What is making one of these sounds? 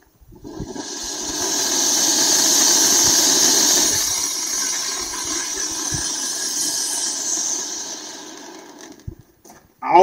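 A firework fountain hisses and crackles loudly, then fades.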